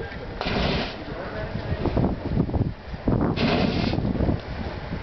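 A flame whooshes in loud bursts outdoors.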